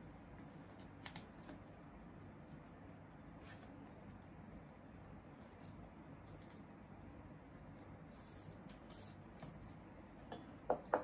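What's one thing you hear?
Hands rustle and tap lightly on a table.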